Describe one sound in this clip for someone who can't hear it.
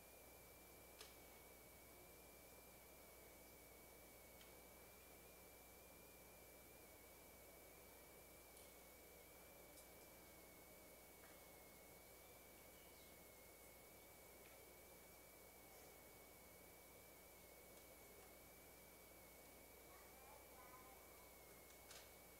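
Small objects clink and knock softly.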